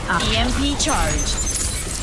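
A laser weapon fires with a buzzing hum.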